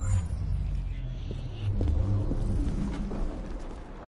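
Footsteps walk slowly on a stone pavement.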